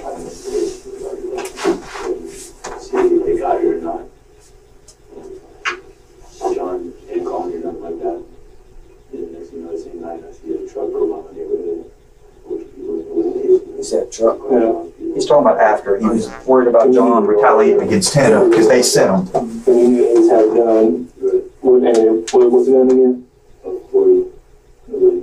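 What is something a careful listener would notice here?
A young man speaks in a low voice.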